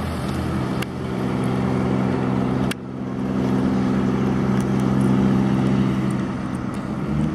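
A heavy truck engine rumbles steadily close by.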